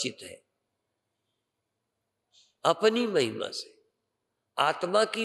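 An elderly man speaks with feeling into a microphone, pausing between phrases.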